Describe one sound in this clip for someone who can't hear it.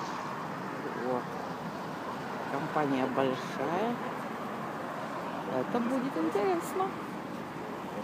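A woman speaks close to the microphone.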